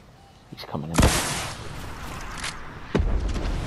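A rocket launcher fires with a loud whoosh and boom.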